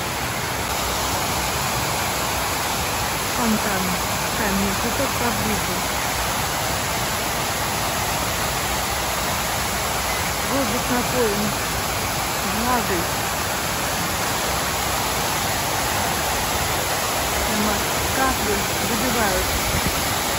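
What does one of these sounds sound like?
Water from a large fountain splashes and rushes loudly and steadily.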